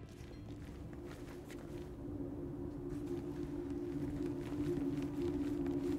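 Footsteps tread down wooden stairs.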